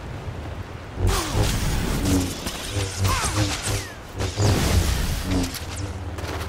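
Energy blades hum and clash in a fight.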